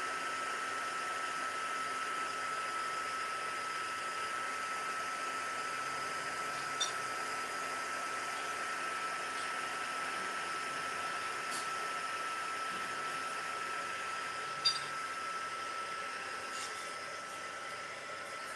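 A heat gun blows with a steady whirring hiss and a high whine.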